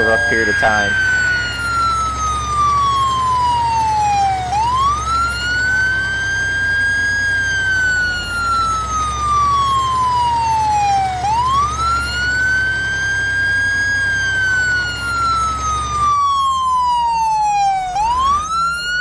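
A fire truck siren wails, rising and falling slowly.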